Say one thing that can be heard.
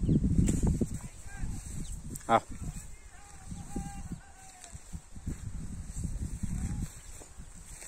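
A large dog sniffs among leafy ground cover.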